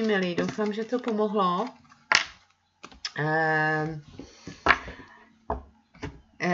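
Playing cards are shuffled and tapped on a table.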